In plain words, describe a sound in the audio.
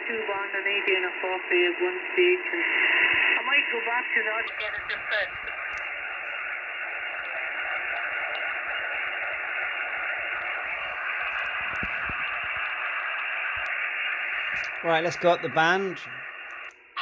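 Voices come through a radio loudspeaker in short, warbling bursts.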